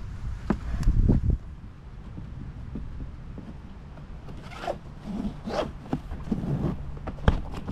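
Nylon straps rub and rustle against an inflatable boat.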